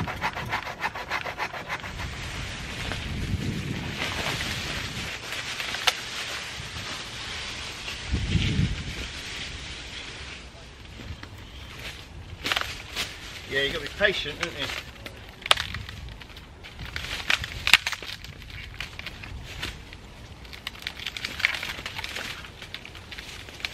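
Branches rustle and snap as a man drags them through a tree.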